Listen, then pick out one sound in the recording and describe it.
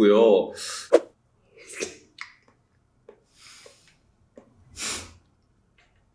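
A young man slurps and chews food close to a microphone.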